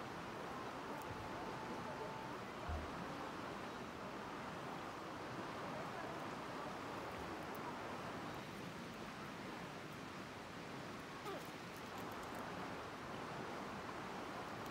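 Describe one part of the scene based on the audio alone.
Wind blows softly outdoors, rustling leaves.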